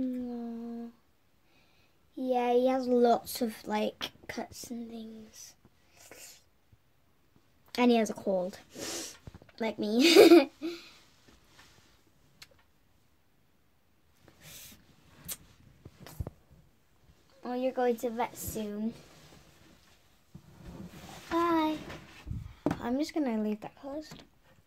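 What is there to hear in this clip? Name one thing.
A young girl talks close by, with animation, in short bursts.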